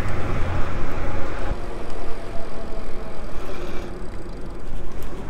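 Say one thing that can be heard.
Bicycle tyres hum on pavement.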